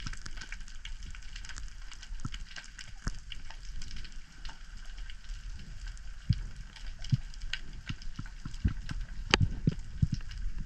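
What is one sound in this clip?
Sharp clicks and crackles sound all around underwater.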